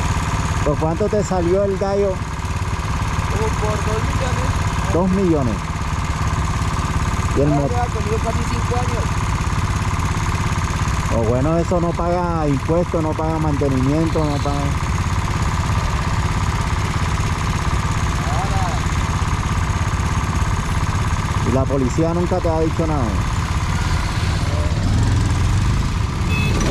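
A small motorcycle engine idles with a steady, low putter.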